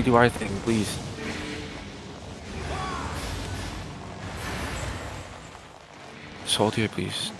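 Magic spells whoosh and crackle in a crowded battle.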